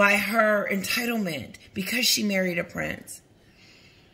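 A woman speaks close to the microphone, calmly and with feeling.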